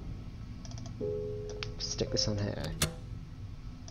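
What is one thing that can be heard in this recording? A wooden dial clicks as it turns.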